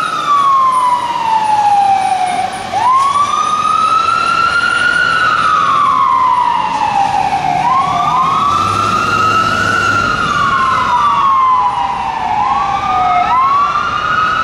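A fire truck engine rumbles as it drives past.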